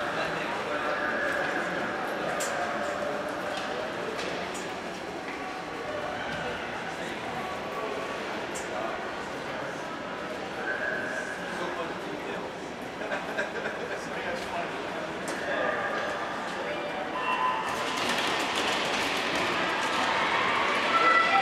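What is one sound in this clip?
A crowd chatters in a large echoing rink.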